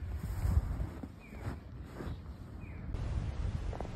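Boots crunch through deep snow.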